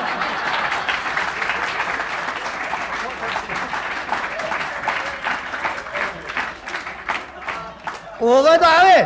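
A large crowd laughs loudly.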